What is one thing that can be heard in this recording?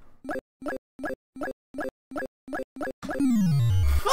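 Electronic game beeps tick rapidly and evenly.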